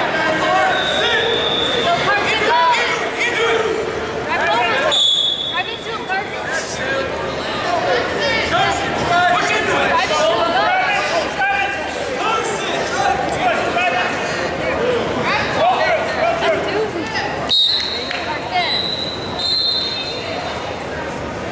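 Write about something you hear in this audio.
A whistle blows shrilly several times.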